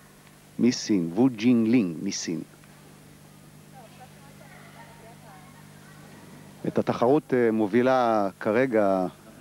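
A man speaks calmly through a loudspeaker in a large hall.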